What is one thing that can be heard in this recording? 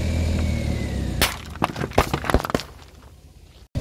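Drink cans burst and crunch under a rolling tyre.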